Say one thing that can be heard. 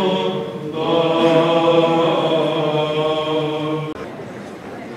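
A group of men chants together in harmony through a microphone, in a reverberant hall.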